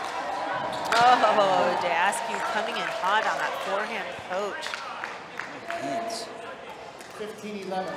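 A crowd cheers and claps in an echoing hall.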